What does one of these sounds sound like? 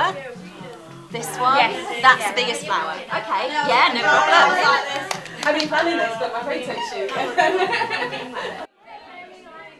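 Several women talk and laugh close by.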